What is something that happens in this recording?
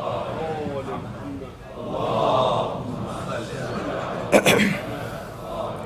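A man speaks emotionally into a microphone, in a large echoing hall.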